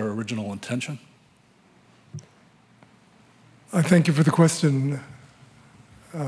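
An older man asks a question through a microphone.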